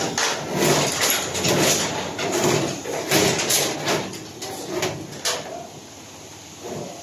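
Plastic cables rustle and scrape as they are pulled by hand, close by.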